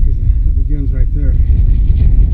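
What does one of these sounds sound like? A small propeller plane drones in the distance.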